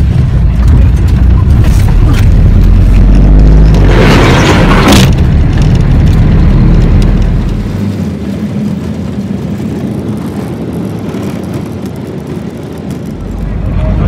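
Tyres roll over a rough dirt road.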